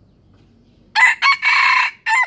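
A rooster crows loudly nearby.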